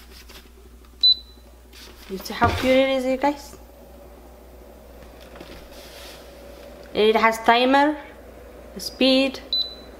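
An appliance gives a short electronic beep as a button is pressed.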